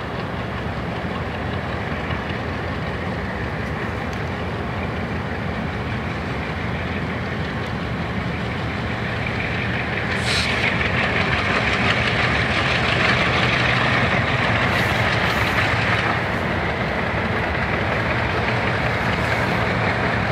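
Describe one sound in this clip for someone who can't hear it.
Diesel locomotives rumble steadily as they approach, growing louder.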